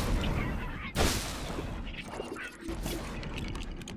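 A game explosion bursts with a loud bang.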